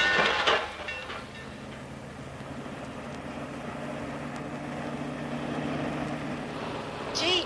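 A car engine hums as the car drives along.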